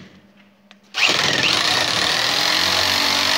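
An electric drill whirs loudly into wood.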